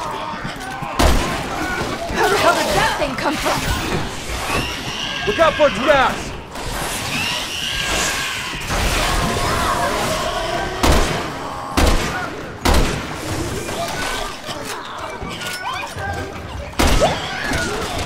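A rifle fires loud single shots that echo in a large hall.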